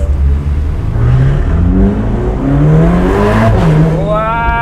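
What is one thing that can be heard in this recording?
A car engine revs up loudly.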